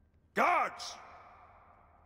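A man shouts a short command in a large echoing hall.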